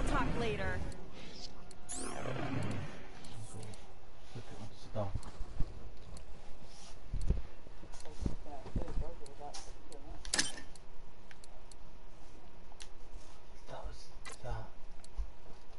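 Menu clicks and chimes sound.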